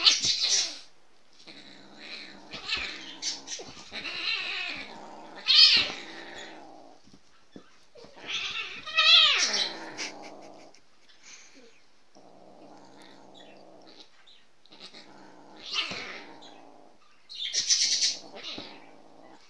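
A cat meows loudly several times, close by.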